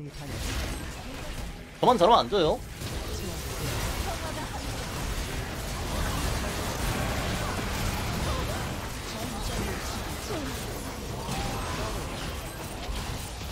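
Video game spell effects whoosh and crackle during a fight.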